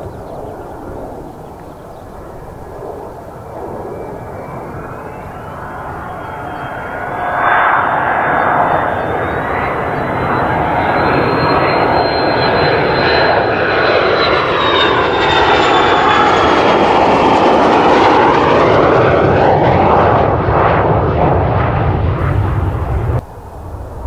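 A jet engine whines and roars loudly, growing louder as the jet approaches and flies past overhead.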